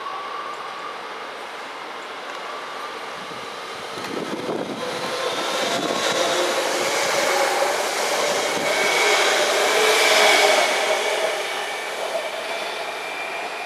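An electric train rolls into a station and passes close by.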